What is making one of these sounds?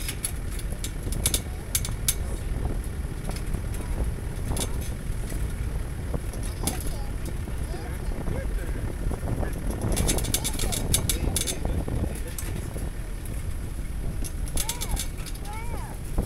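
Loose metal parts of the vehicle rattle and clatter over bumps.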